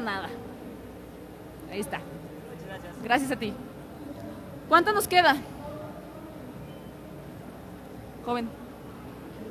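A young woman speaks into a microphone over loudspeakers in a large echoing hall, in short bursts.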